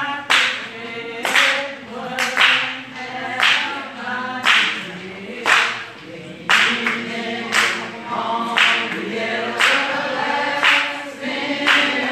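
A crowd of men and women sings together.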